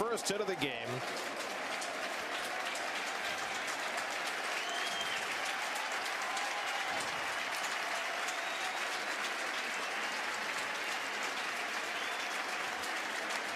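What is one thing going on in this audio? A large crowd cheers and applauds loudly outdoors.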